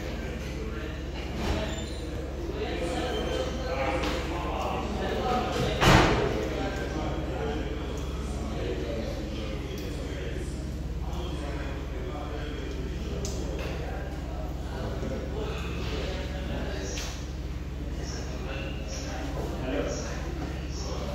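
Men talk quietly in the distance.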